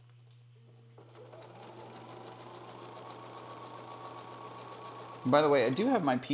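A sewing machine whirs steadily as it stitches.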